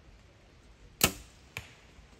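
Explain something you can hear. A bow string snaps sharply as an arrow is released.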